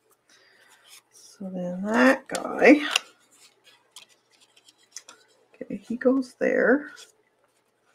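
Paper rustles softly between hands.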